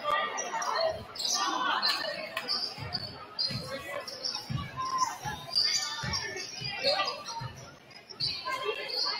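A basketball bounces with dull thumps on the floor.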